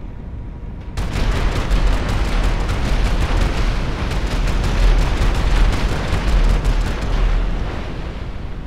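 Explosions boom in quick succession.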